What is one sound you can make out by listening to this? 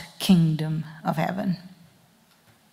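A woman speaks briefly into a microphone, heard through a loudspeaker in a large room.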